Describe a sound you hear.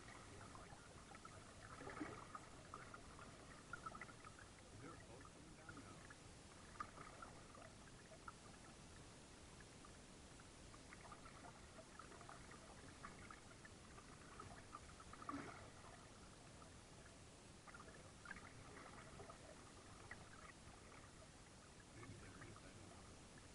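Water laps and splashes gently against a kayak's hull.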